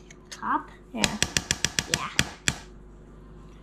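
A spoon scrapes and taps inside a metal baking tin.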